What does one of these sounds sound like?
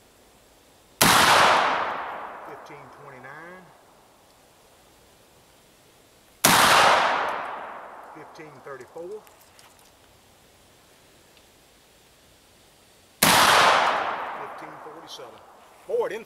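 A rifle fires loud shots outdoors, each echoing away.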